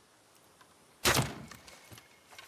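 A bowstring twangs as an arrow is shot.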